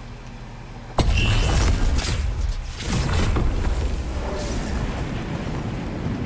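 A loud rushing whoosh bursts out suddenly and roars on.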